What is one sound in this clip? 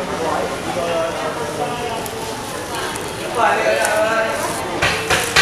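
A knife slices softly through wet fish flesh.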